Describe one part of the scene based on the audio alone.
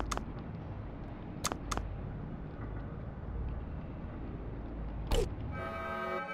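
Short electronic clicks sound.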